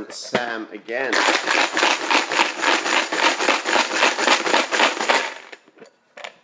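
Plastic counters rattle inside a box being shaken.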